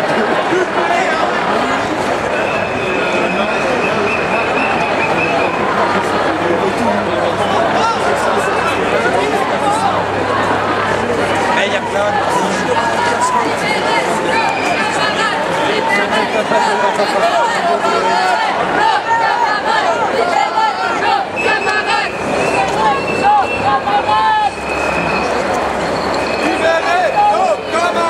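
A large crowd of marching people talks and chants outdoors.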